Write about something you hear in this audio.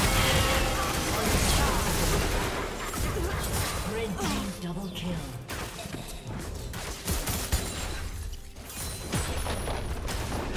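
Game characters strike with sharp hits and impacts.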